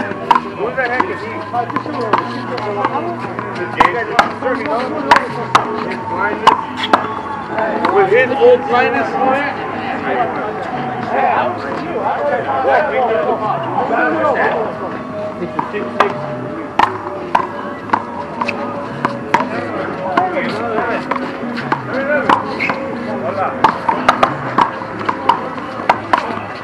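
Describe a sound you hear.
A ball smacks hard against a wall and echoes outdoors.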